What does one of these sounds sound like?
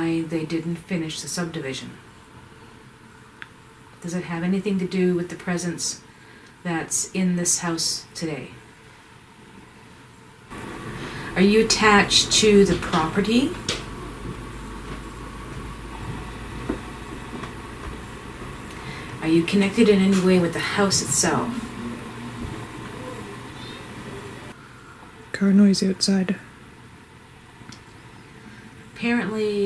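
A woman mumbles and talks drowsily nearby.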